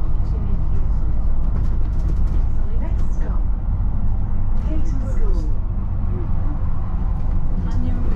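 Cars pass by on the road.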